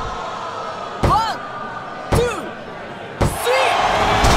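A referee's hand slaps the mat for a count.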